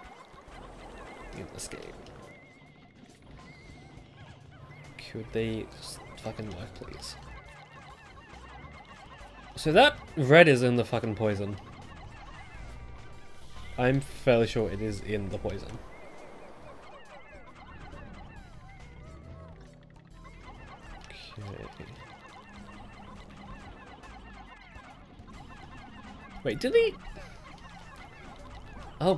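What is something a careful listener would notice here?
Tiny cartoon creatures chirp and squeal.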